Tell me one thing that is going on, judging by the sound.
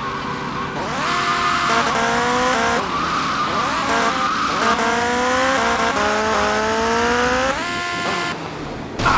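A motorcycle engine revs up through the gears.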